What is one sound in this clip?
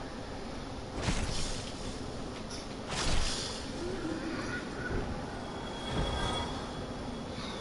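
Sword blows strike a creature with heavy thuds.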